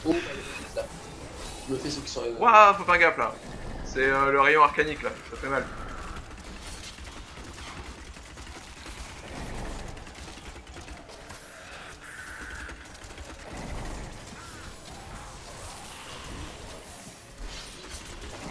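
Magic beams crackle and hum in a fight.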